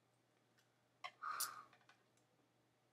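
A young woman bites and crunches into food.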